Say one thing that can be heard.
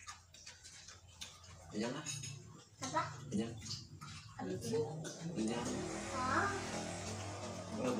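A small boy talks in a high voice close by.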